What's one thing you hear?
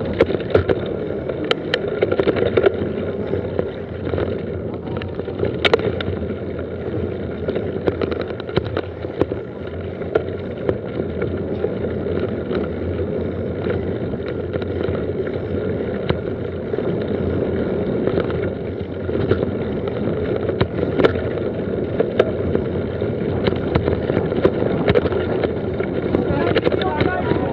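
Mountain bike tyres roll over a dirt trail.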